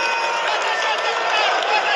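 A fan claps close by.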